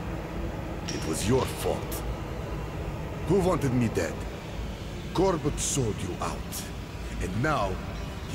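A middle-aged man shouts angrily, close by.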